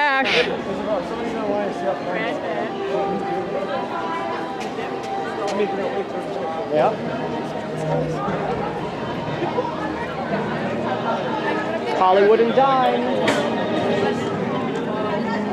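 A crowd of people chatters outdoors all around.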